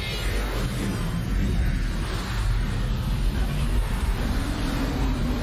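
A deep electric hum rumbles steadily.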